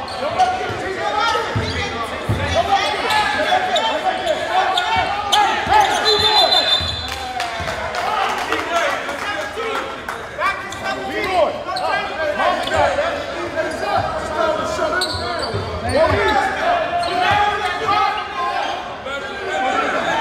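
A crowd chatters and shouts in an echoing gym.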